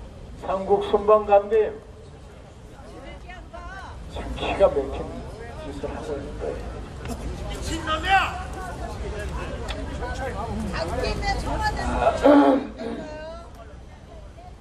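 An elderly man speaks with animation into a microphone, heard through loudspeakers outdoors.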